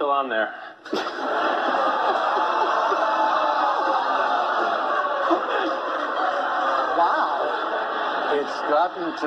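Men laugh heartily through microphones.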